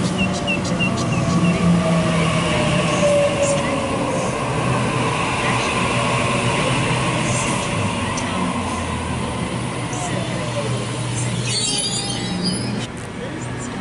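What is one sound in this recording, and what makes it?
An electric train rolls past close by with a steady rumble and clatter of wheels on rails.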